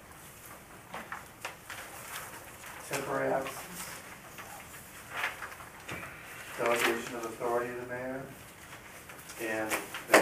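Papers rustle on a table.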